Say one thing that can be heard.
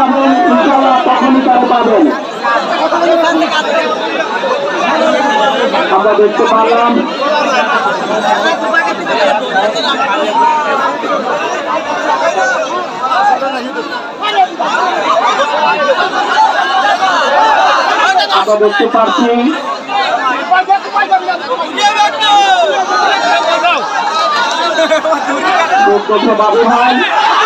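A large outdoor crowd chatters and calls out loudly.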